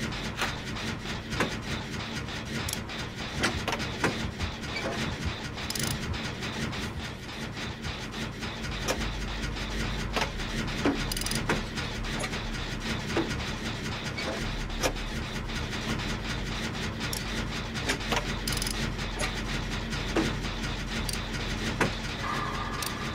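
A low engine hum drones steadily.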